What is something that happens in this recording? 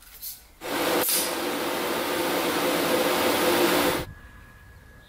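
A TIG welding arc hisses and crackles.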